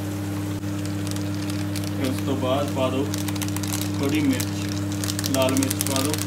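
A plastic spice packet crinkles as it is shaken over a pan.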